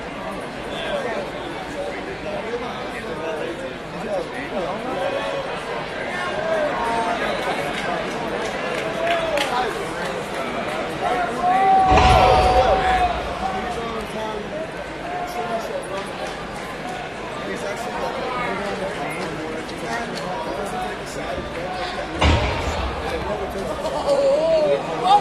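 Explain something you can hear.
A large crowd cheers and chatters in a big echoing arena.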